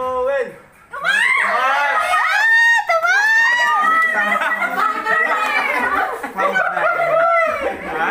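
Several young people talk and laugh close by.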